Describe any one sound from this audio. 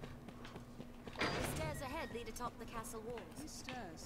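A heavy metal gate creaks open.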